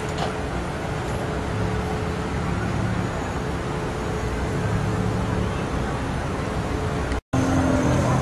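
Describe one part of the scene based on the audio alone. Traffic hums steadily along a busy street.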